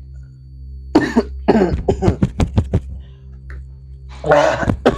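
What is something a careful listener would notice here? A young man cries out in distress nearby.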